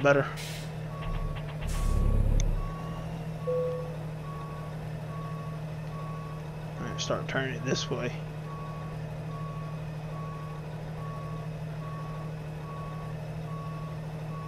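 A reversing alarm beeps at an even pace.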